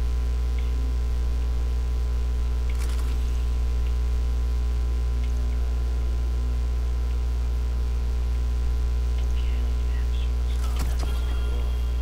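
Soft interface clicks and blips sound as menu items are selected.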